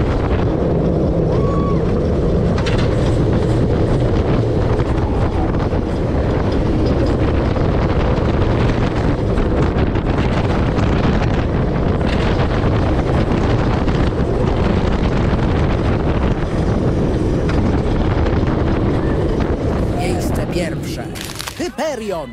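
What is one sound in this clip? Wind roars loudly past as a roller coaster races along.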